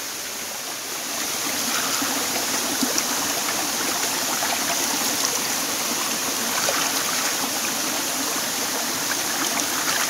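Water splashes against a man's hand.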